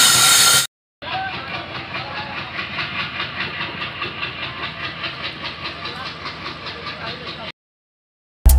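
A passenger train clatters steadily along the tracks.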